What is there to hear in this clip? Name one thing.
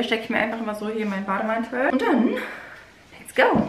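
A young woman talks calmly, close by.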